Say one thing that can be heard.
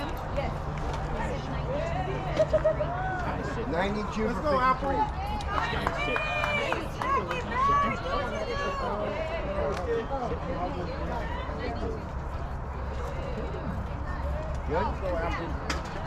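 Young women shout and cheer from across an open field.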